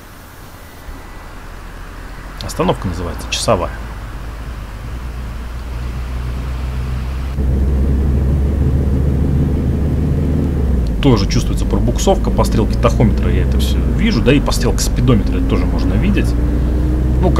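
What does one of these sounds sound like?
A bus engine rumbles low and steadily grows louder.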